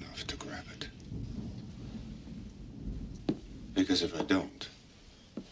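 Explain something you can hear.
A younger man speaks quietly close by.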